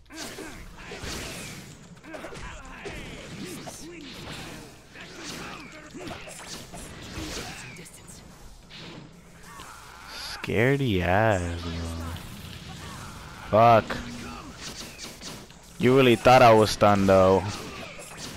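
Blows land with sharp thuds.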